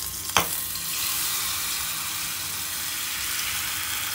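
Batter hisses as it is poured into hot oil.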